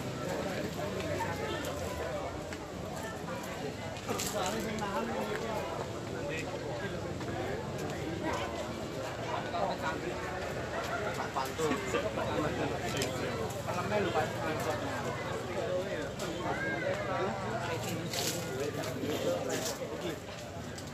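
A crowd of men and women talk and call out nearby, outdoors.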